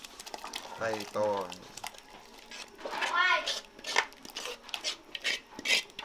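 Thick sauce plops and splashes into a pot of liquid.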